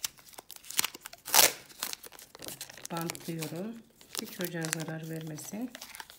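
Masking tape is pulled off a roll with a sticky rasp.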